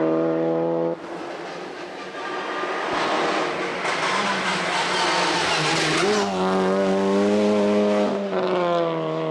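A rally car's engine revs and changes pitch as it shifts gears while approaching.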